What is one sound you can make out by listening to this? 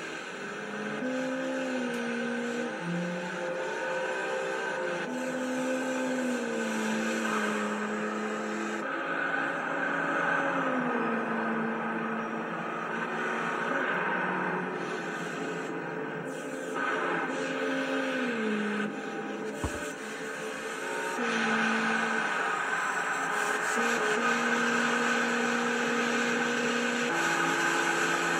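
A racing car engine revs high and shifts gears through a television speaker.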